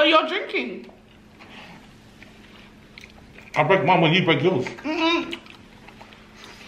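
Food crunches and tears as it is eaten.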